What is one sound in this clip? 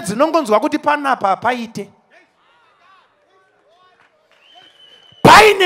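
A man preaches loudly with animation through a microphone over loudspeakers.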